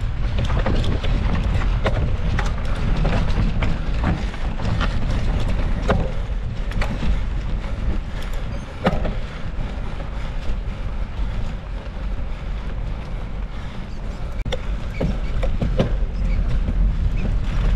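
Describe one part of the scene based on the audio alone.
Wind rumbles loudly against a moving bicycle.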